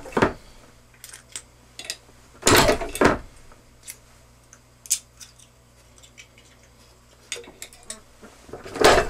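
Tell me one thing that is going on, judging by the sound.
Small metal parts click and clink as they are handled.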